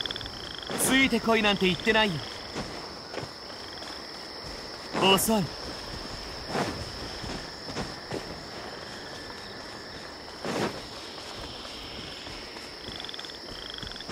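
Footsteps run and rustle through tall grass.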